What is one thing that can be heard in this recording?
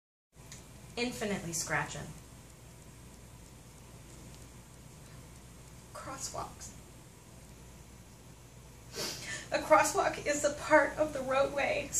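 A young woman speaks close by, pausing between phrases.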